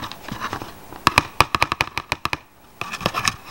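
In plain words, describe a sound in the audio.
Cards riffle quickly with a rapid fluttering.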